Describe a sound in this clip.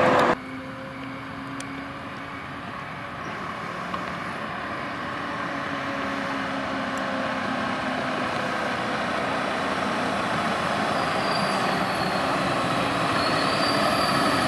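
A fire engine grows louder as it approaches.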